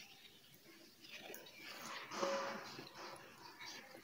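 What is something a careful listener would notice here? A young woman slurps noodles loudly.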